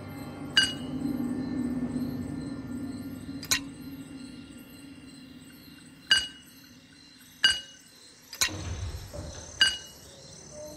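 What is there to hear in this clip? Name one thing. Bright magical chimes ring out as gems click into place.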